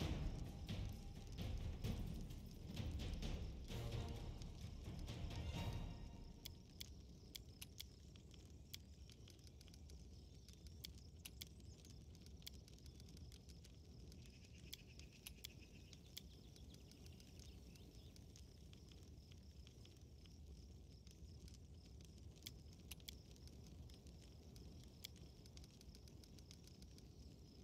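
Soft interface clicks sound as menus open and close.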